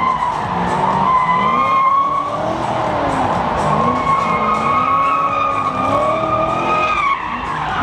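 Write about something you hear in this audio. A racing car engine revs hard and loud, rising and falling.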